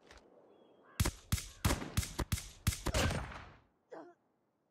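Gunfire rattles in rapid bursts in a video game.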